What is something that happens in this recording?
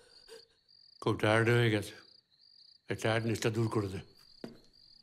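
An elderly man speaks tensely nearby.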